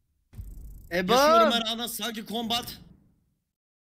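A young man shouts excitedly into a microphone, close by.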